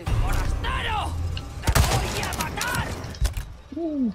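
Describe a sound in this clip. A rifle fires a loud shot.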